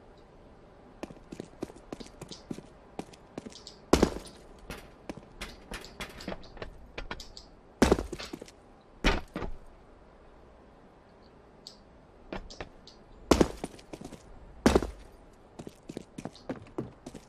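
Footsteps tap and thud on hard surfaces.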